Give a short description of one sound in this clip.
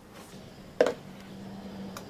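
Plastic cups knock on a hard counter.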